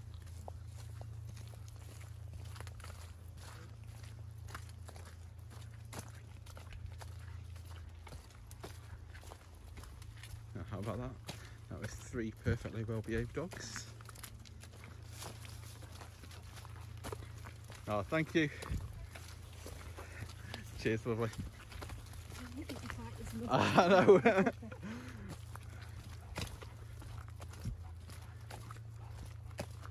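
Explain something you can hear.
Rubber boots squelch along a muddy path.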